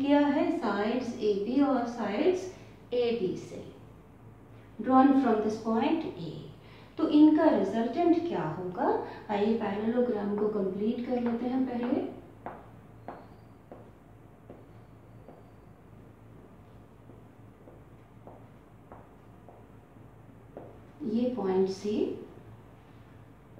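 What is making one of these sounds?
A middle-aged woman explains calmly, close by.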